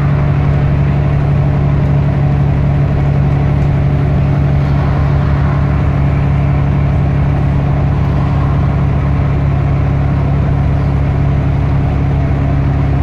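A bus rattles and rumbles as it drives along.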